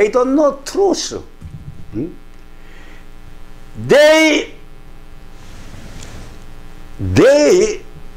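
An elderly man speaks dramatically and wails in long cries, close to a microphone.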